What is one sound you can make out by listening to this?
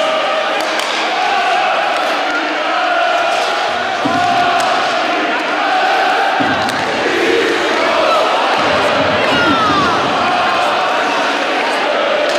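A crowd chatters and cheers in a large echoing arena.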